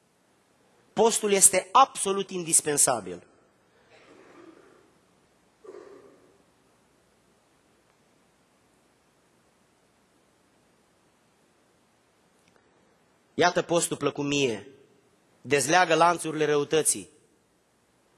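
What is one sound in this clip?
A man speaks with emphasis into a microphone, with pauses.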